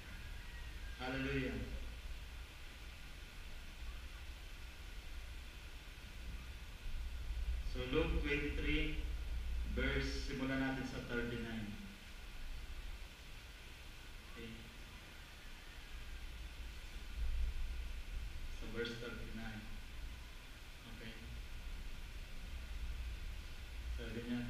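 A man speaks into a microphone at a lectern, heard through loudspeakers in an echoing hall, with pauses between phrases.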